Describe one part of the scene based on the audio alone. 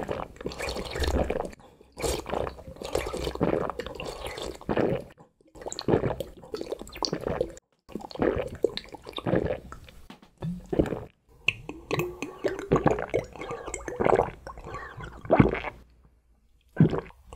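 Liquid sloshes and gurgles in a glass.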